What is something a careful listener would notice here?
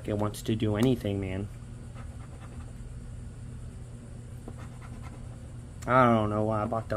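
A coin scratches across a paper card.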